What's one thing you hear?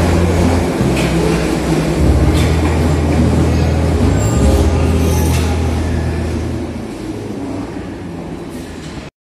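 Train wheels clack and screech on the rails.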